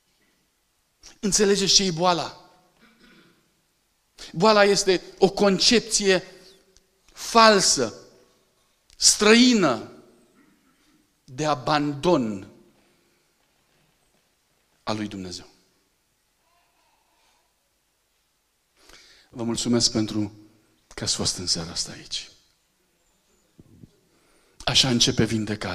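A middle-aged man speaks with animation into a microphone, heard through a loudspeaker, pausing between phrases.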